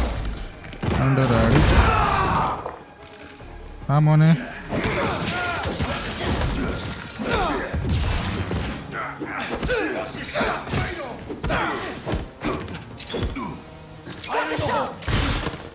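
Punches and kicks thud in a fast video game fight.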